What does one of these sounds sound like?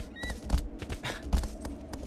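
Horse hooves gallop in quick, steady thumps.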